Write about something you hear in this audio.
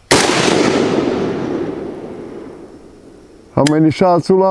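A rifle fires a single loud shot that echoes off through the woods.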